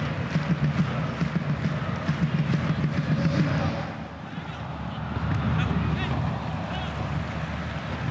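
A large stadium crowd chants and cheers in an open space.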